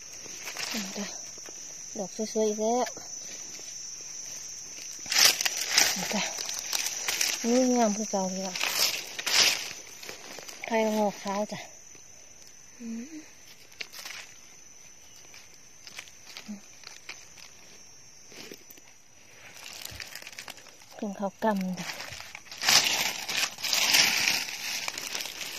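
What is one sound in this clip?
Dry leaves rustle and crackle as a hand brushes through them.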